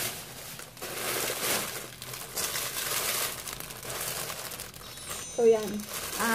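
Plastic wrapping crinkles and rustles as it is handled close by.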